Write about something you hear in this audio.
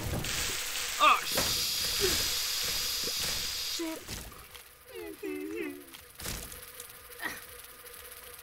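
A small creature lets out squeaky, gurgling cries.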